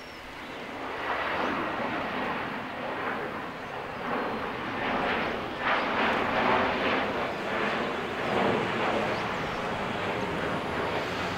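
Small waves lap against rocks by the shore.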